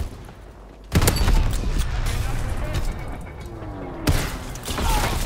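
A shotgun fires with loud booms.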